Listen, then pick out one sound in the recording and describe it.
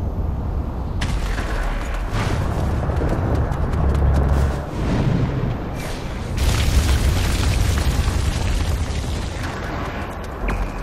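Wind rushes loudly past a gliding figure.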